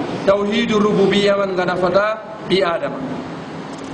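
A man speaks calmly into a clip-on microphone, close by.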